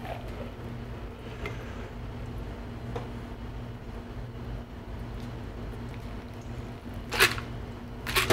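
Liquid pours softly from a cocktail shaker into a glass.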